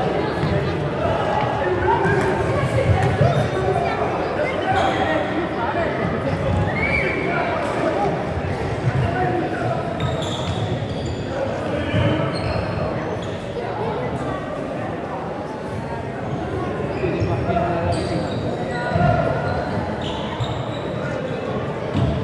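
A crowd of spectators chatters and calls out in a large echoing hall.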